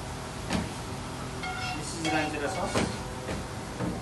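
A metal ladle scrapes against a metal pan.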